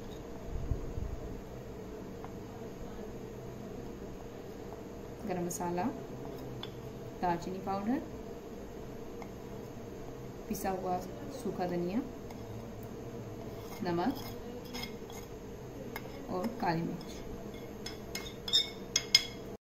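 A spoon scrapes and taps against a china plate.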